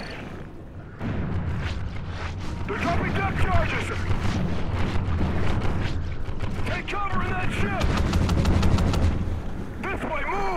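Depth charges explode underwater with a deep, heavy rumble.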